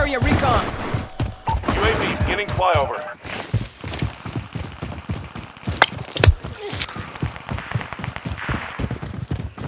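A rifle's metal parts click and rattle as it is handled.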